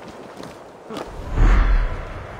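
Air rushes loudly past during a fall.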